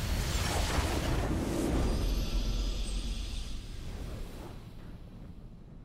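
A game's victory fanfare plays with a loud swelling burst and then fades.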